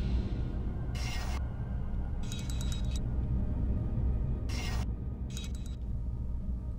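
Small metal mechanisms click and clunk.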